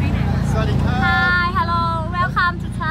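A young woman speaks in a high, cheerful voice close by.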